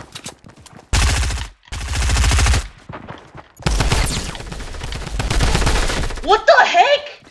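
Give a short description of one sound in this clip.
Rapid gunshots crack at close range.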